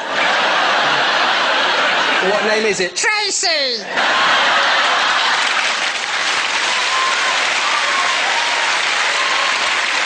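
A large audience laughs and applauds loudly.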